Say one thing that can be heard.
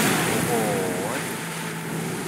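A huge creature lets out a falling, wavering shriek.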